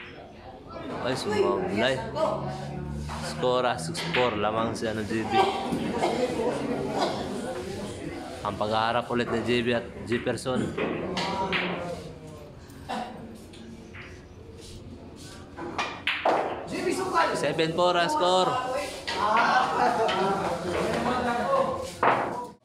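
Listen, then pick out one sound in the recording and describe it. Men talk with animation nearby.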